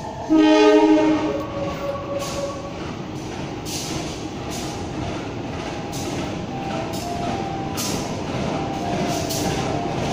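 A train rumbles as it slowly approaches.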